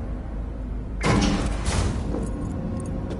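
Elevator doors slide shut with a heavy clunk.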